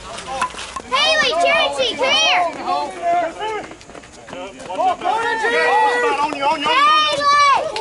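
Men shout and cheer loudly.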